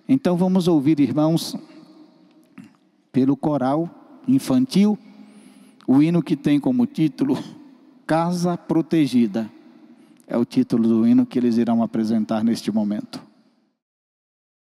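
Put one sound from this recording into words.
A man speaks with feeling into a microphone, heard through loudspeakers.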